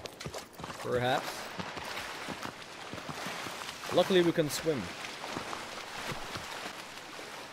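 Water splashes as someone swims.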